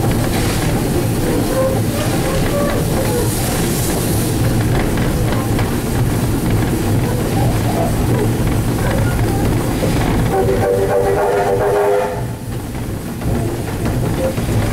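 A steam locomotive chuffs and rumbles steadily as it moves along the tracks.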